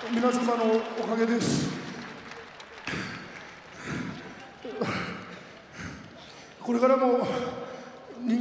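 A man speaks in a tearful, choked voice through a microphone.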